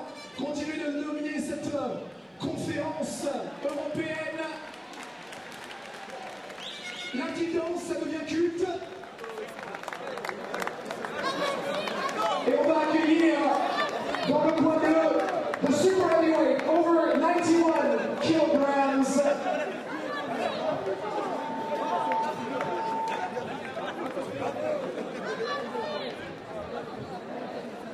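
A crowd cheers and claps.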